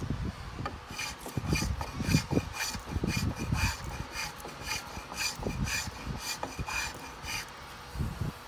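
A small hand plane shaves wood in quick, repeated short strokes.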